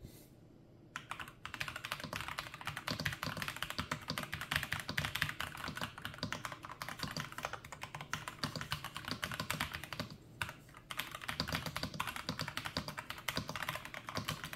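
Mechanical keyboard keys clack rapidly under fast typing.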